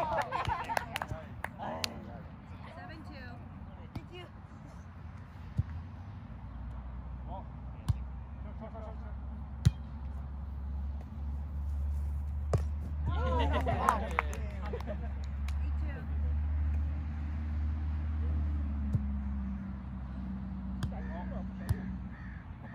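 A volleyball is struck with sharp thumps.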